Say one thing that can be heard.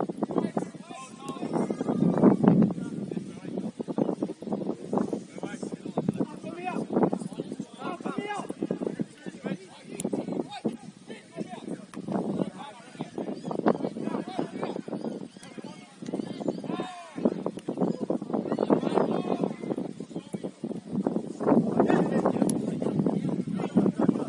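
Young men shout and call to each other outdoors, some way off.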